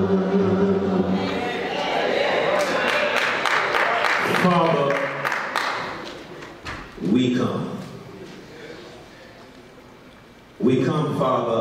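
An elderly man preaches with animation through a microphone in a hall that echoes.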